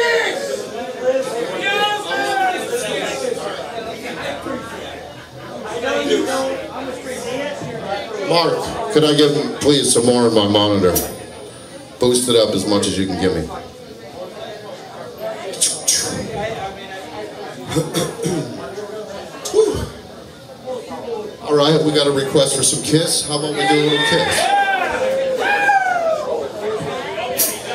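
Drums and cymbals are played.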